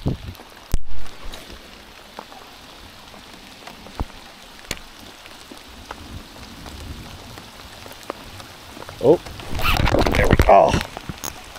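Wind buffets close by outdoors.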